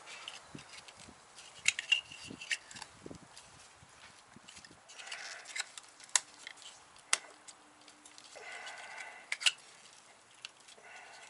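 Metal parts click and clink as hands work on a car engine.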